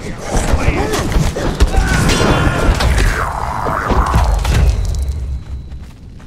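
Metal weapons clash and strike in a noisy fight.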